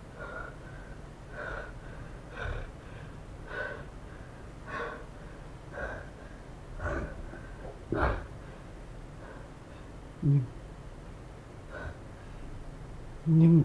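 A man breathes heavily and gasps.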